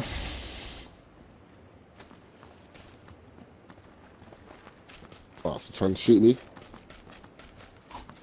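Footsteps run over dry ground.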